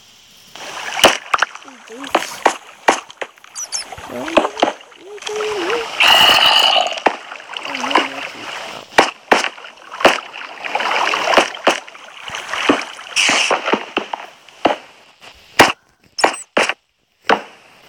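Stone blocks are placed with short dull thuds.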